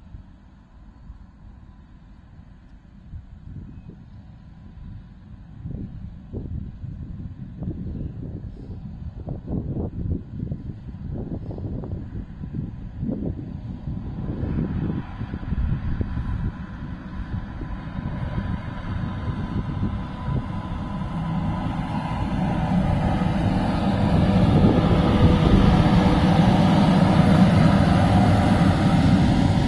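A diesel locomotive rumbles closer, its engine growing louder.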